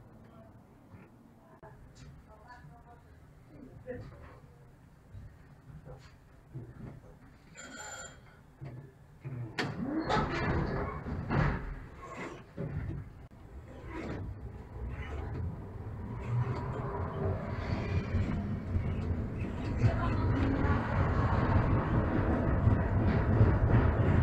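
A tram hums and rumbles as it rolls along its rails.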